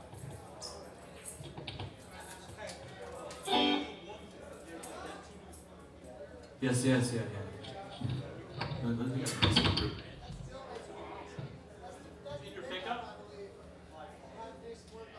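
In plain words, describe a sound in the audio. A drummer taps drums and cymbals.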